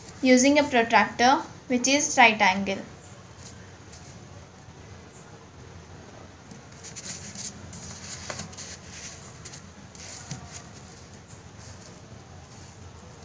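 A pencil scratches softly across paper.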